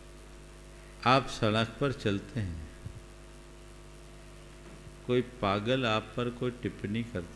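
An elderly man speaks slowly and earnestly into a microphone, with pauses between phrases.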